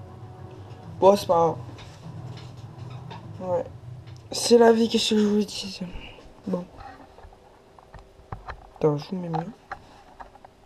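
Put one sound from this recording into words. A man speaks close by, in short bursts.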